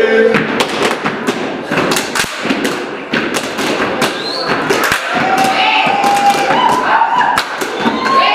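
Hands slap against rubber boots.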